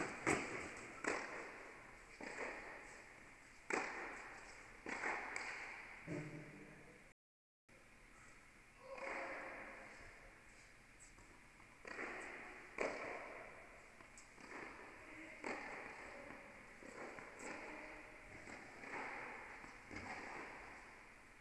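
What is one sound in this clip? Tennis balls are struck with rackets, each hit ringing through a large echoing hall.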